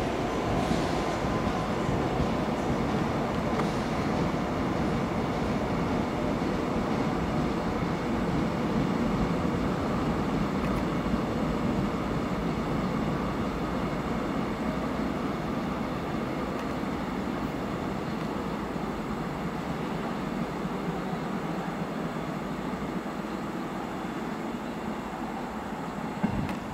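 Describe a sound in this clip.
A train rumbles away along the tracks, slowly fading.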